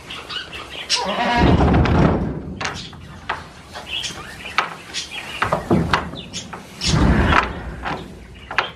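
Goats bleat loudly nearby.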